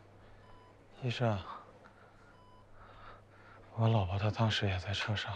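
A man speaks slowly and weakly, close by.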